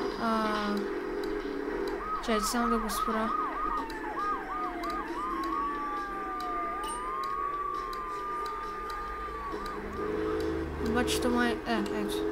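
Radio music plays and keeps switching between stations.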